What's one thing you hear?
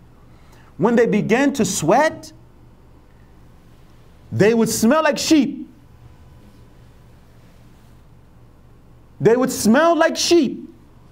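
A middle-aged man speaks with animation into a microphone, in short bursts.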